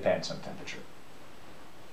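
A man speaks briefly and calmly.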